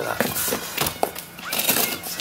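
Cardboard scrapes and rustles under a hand.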